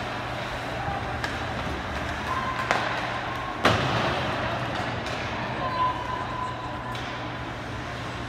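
Skates scrape across the ice in a large echoing rink.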